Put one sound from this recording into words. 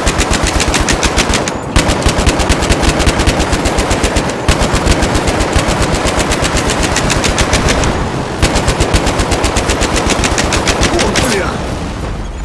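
A heavy machine gun fires long, rapid bursts.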